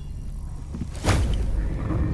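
A sudden loud whoosh bursts out.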